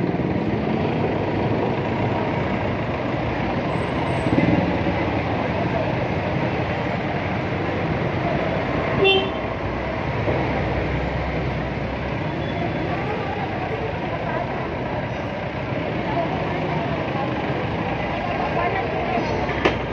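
Busy street traffic rumbles all around outdoors.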